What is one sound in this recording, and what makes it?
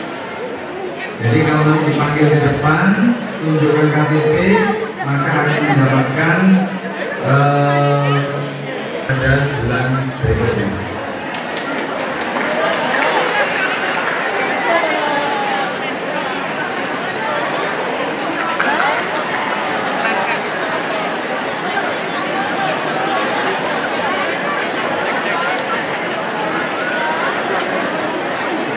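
A crowd of women chatter and call out in a large echoing hall.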